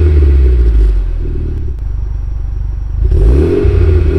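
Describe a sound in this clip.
A car engine idles with a deep burble between revs.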